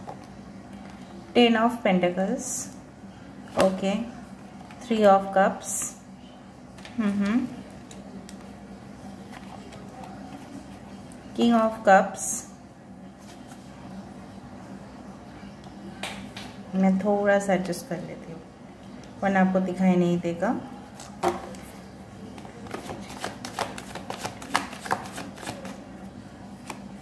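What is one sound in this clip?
Playing cards riffle and flutter as a deck is shuffled.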